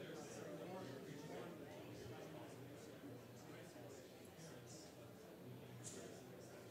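A crowd of men and women murmur and chat quietly in a large room.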